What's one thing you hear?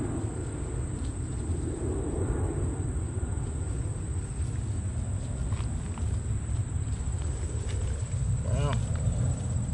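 A trowel scrapes and digs into dry soil.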